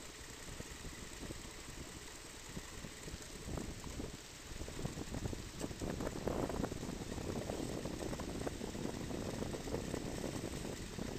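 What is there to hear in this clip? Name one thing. Water splashes against the side of a small boat.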